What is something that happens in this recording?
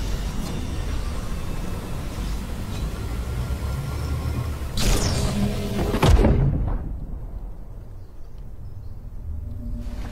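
A glowing portal hums and swirls.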